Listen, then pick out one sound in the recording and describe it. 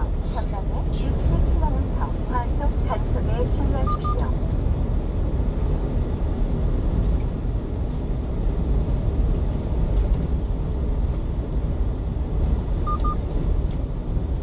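Tyres roll over the road with a low rumble.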